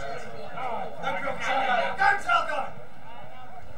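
A small crowd of spectators shouts and cheers outdoors.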